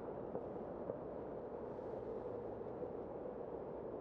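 A car drives past on the road nearby.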